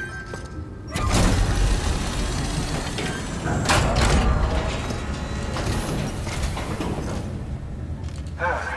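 A machine rumbles and whooshes loudly.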